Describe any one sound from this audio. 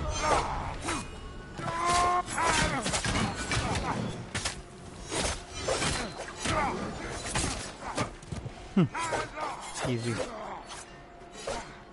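Swords clash and slash repeatedly in a fight.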